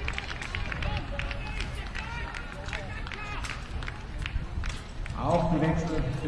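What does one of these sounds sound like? A crowd of spectators claps outdoors.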